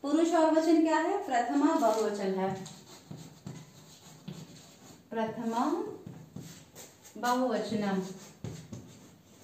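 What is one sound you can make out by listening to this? A woman speaks nearby, explaining in a teaching manner.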